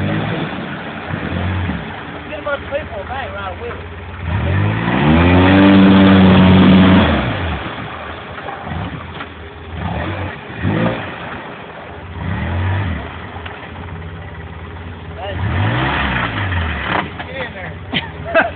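A small utility vehicle's engine revs up and down as it strains through mud.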